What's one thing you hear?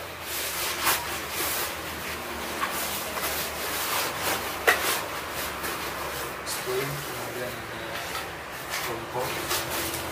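A backpack's fabric rustles as it is packed.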